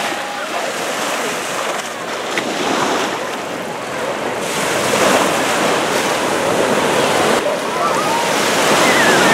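Small waves break and wash up onto a beach.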